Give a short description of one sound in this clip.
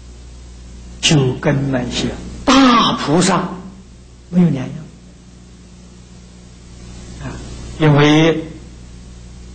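An elderly man speaks calmly and slowly into a microphone, pausing between phrases.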